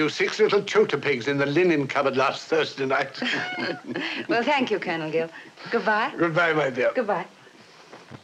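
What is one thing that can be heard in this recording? An elderly woman laughs and chatters happily.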